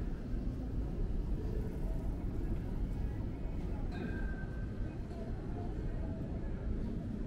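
Distant city traffic hums steadily.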